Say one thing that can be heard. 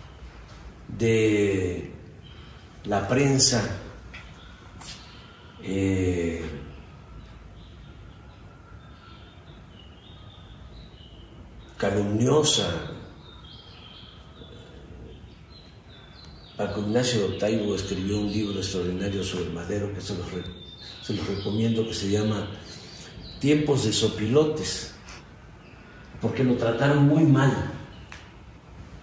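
An elderly man speaks calmly in short phrases with long pauses, close by.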